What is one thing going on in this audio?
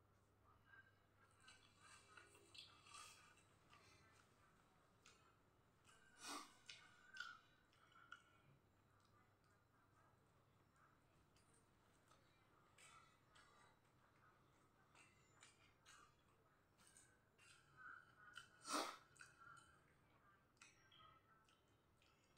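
A young man slurps noodles.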